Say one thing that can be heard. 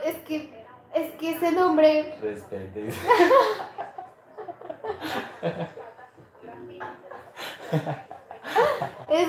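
A young woman talks and laughs close by.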